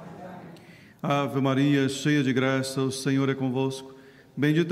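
A man chants loudly through a microphone.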